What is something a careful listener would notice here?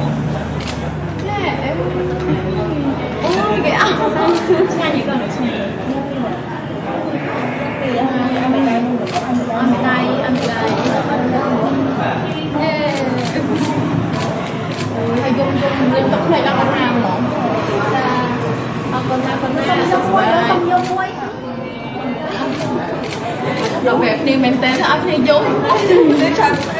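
A young woman answers in a chatty tone, close by.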